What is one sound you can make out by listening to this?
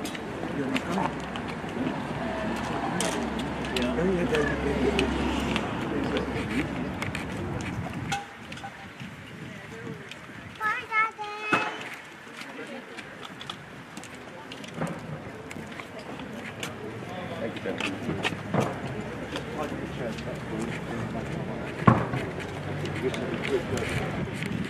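Several men talk quietly nearby outdoors.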